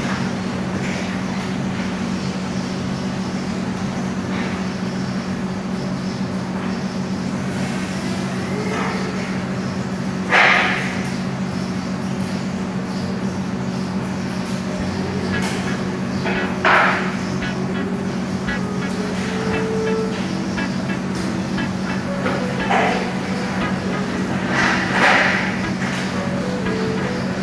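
A knife scrapes and cuts through meat and bone.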